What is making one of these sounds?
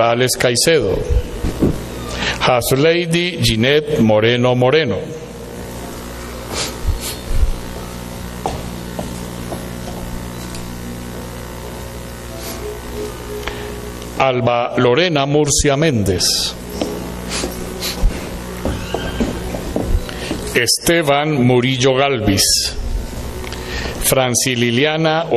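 A man reads out over a loudspeaker in a large echoing hall.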